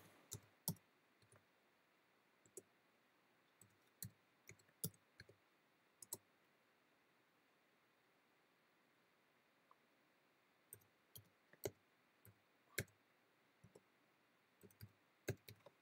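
Keys click on a keyboard in short bursts.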